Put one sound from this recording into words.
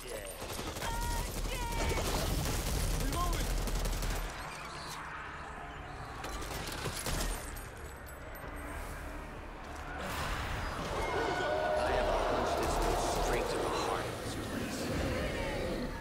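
Creatures screech and snarl.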